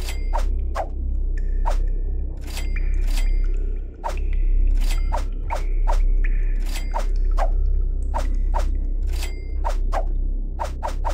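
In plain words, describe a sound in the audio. Short game menu clicks sound over and over as items change.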